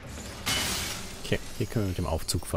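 Metal debris crashes and clatters around.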